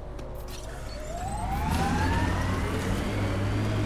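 A vehicle engine revs up and roars.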